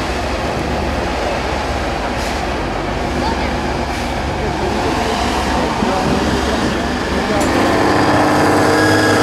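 Big tyres crunch and slip over rocks and mud.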